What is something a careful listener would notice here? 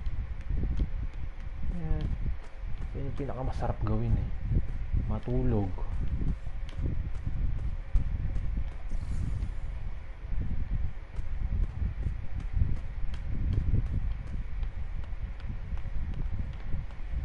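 Footsteps tap quickly and steadily on a hard floor.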